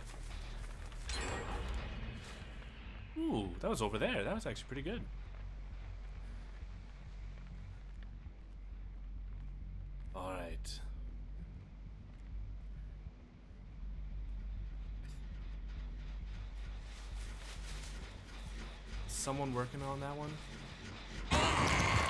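Footsteps crunch over dry leaves.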